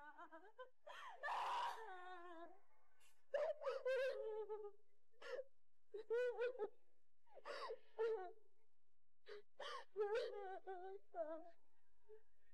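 A young woman cries and speaks in a choked voice.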